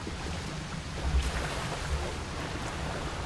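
Water splashes as feet run through a shallow stream.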